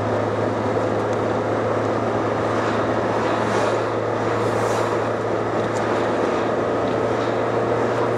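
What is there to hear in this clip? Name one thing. Oncoming vehicles whoosh past.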